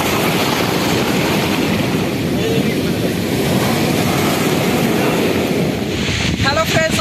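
Foamy waves wash and fizz over rocks close by.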